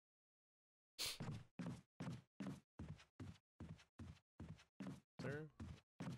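A man speaks close into a microphone.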